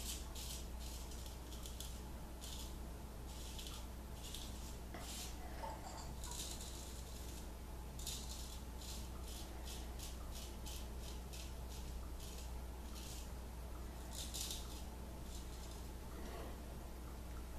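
A razor scrapes across stubble in short, repeated strokes, close by.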